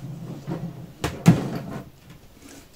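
Plastic tubes knock and clatter against a plastic tank.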